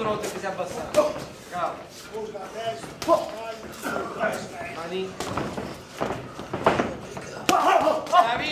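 Punches thud on boxing gloves and bodies.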